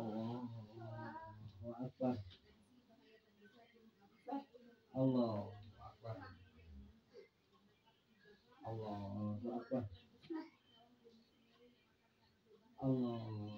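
A man chants a prayer aloud nearby, in phrases with pauses between them.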